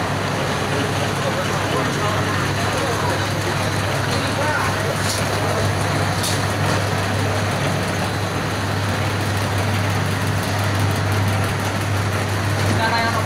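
Factory machinery hums and rattles steadily.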